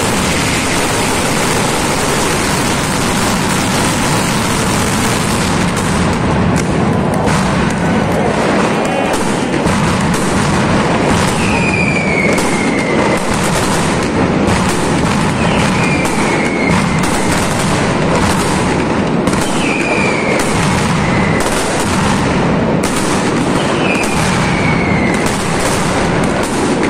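Firecrackers explode in a loud, rapid, continuous barrage outdoors.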